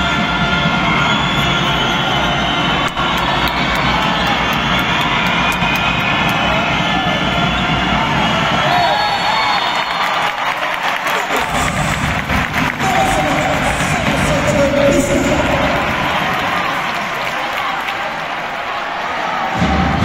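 A large crowd cheers and chatters loudly in a big echoing hall.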